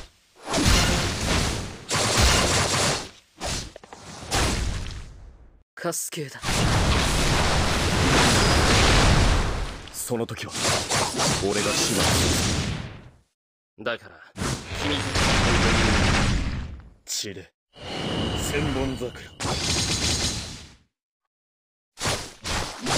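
Game sound effects of slashes and blasts whoosh and crash in bursts.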